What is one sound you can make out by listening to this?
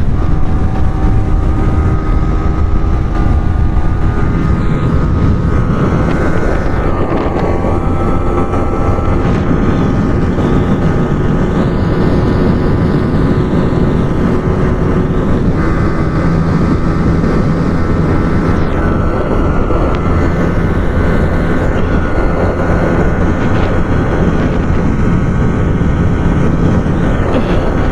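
A motorcycle engine roars loudly and rises in pitch as the bike speeds up.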